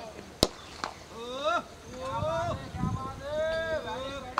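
Men shout in the distance outdoors.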